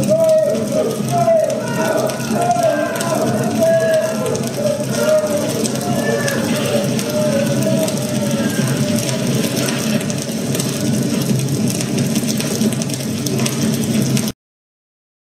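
A man sings slowly in a low voice.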